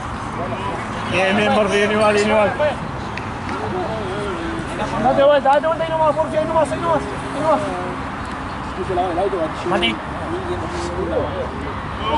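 Young men talk with animation close by, outdoors.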